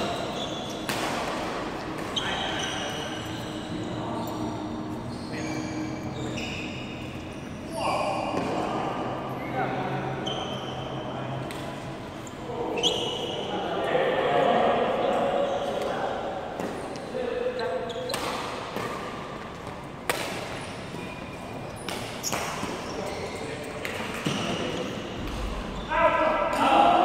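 Voices of young men echo around a large hall.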